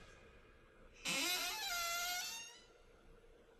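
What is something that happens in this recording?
A heavy metal door creaks and grinds open.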